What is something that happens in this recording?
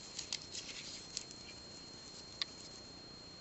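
Small beads click softly against each other as they are handled.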